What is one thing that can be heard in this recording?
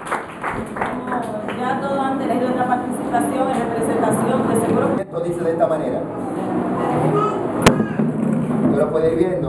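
A group of children sing together nearby.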